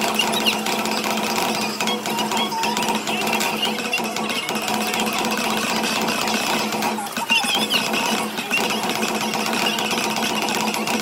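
Upbeat electronic game music plays loudly from a loudspeaker.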